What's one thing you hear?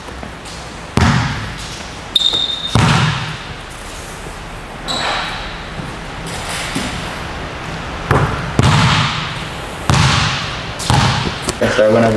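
A basketball bounces on a hard floor with a ringing echo.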